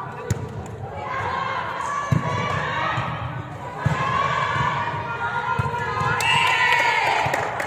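Young women shout and call out loudly in a large echoing hall.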